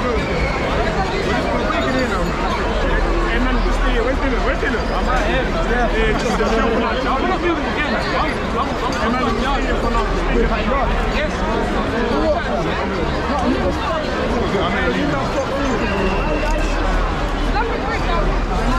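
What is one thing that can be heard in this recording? A large outdoor crowd chatters and calls out all around, with many voices at once.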